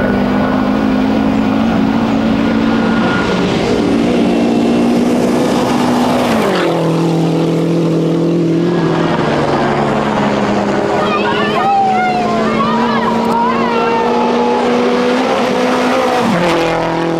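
A rally car engine roars at high revs as the car speeds closer, then drops in pitch as it passes.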